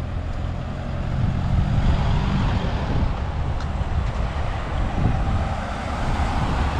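A car drives past on a nearby street.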